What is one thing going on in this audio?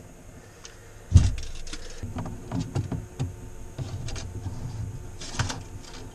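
A tape measure slides out and snaps back.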